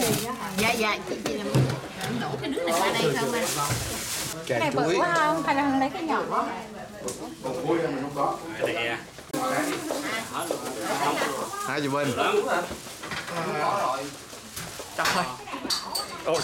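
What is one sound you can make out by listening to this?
Several people chatter in the background.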